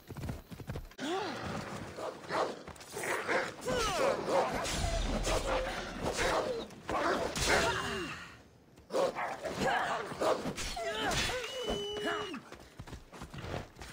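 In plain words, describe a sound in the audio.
A blade slashes and strikes repeatedly.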